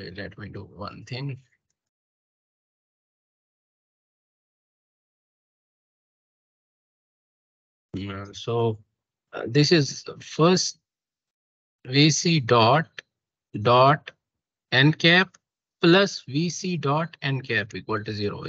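A young man speaks calmly through an online call microphone, explaining with pauses.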